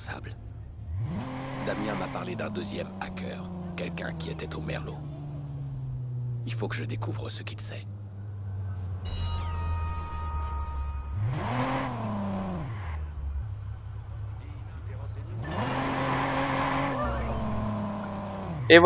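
Car tyres screech on the road.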